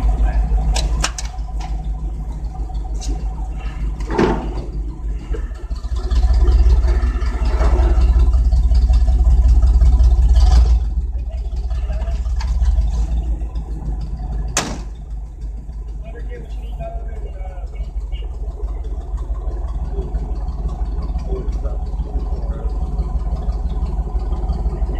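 Young men talk casually nearby outdoors.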